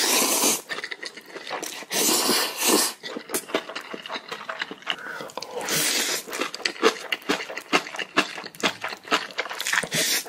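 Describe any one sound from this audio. A man slurps noodles loudly, close to a microphone.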